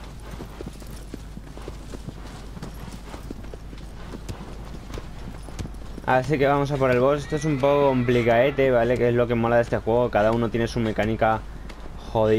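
A horse gallops with quick hoofbeats on grass.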